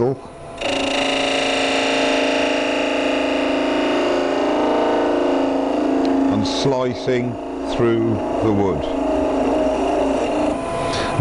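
A chisel scrapes and cuts against spinning wood.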